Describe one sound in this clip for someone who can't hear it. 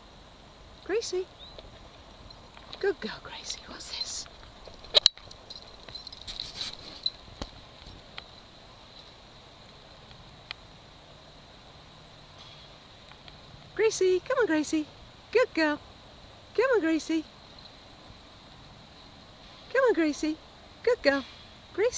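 A dog's paws patter on hard ground.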